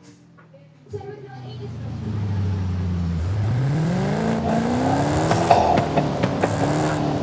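A car engine revs and climbs in pitch as the car speeds up.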